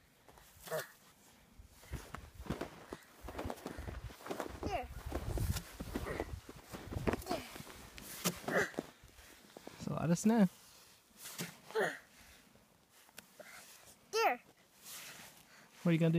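Snow crunches and scrapes under a child's hands and boots.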